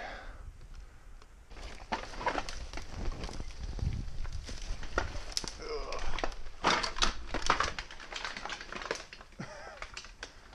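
Dry branches rustle and snap close by.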